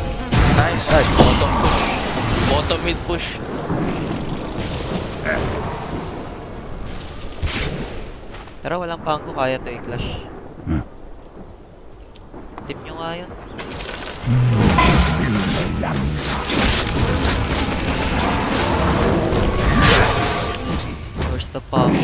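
Magic blasts and crackling spells burst in a game battle.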